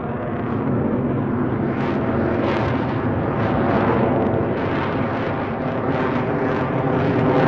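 A jet engine roars loudly overhead.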